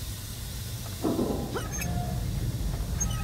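A metal valve wheel creaks and squeals as it is turned.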